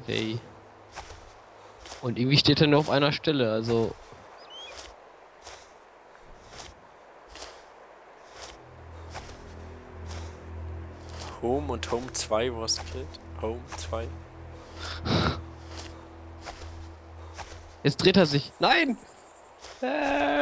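Grass rustles softly as a soldier crawls through it.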